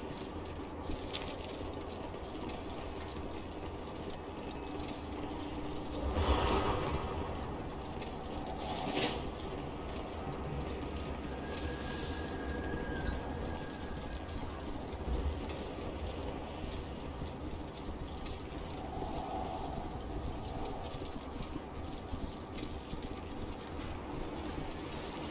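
Hooves clop steadily as a mount runs along.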